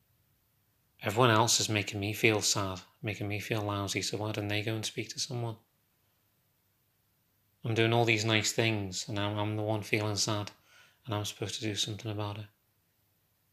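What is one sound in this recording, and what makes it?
A young man talks calmly and close up, with pauses.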